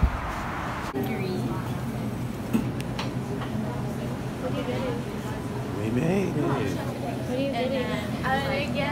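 Young women talk cheerfully close by.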